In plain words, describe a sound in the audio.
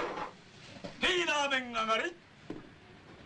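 A young woman speaks in a high voice.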